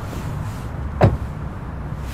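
A knuckle taps on a car window.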